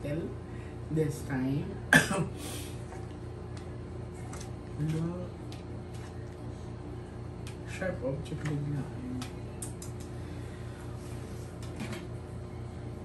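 Cards tap and slide on a table.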